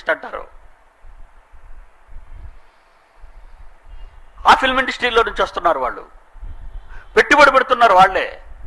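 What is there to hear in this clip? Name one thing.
An elderly man speaks forcefully into a microphone, with pauses between phrases.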